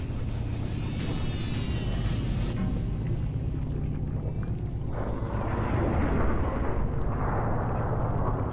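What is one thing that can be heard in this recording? Magic spells crackle and burst in a game.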